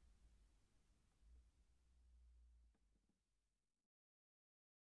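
A nylon-string guitar is played softly and fades out.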